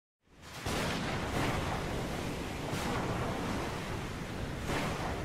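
Strong wind roars over a stormy sea.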